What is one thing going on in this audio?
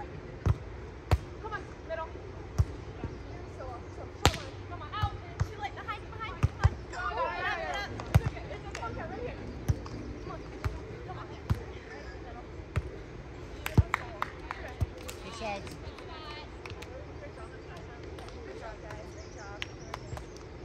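Young women call out to each other during play.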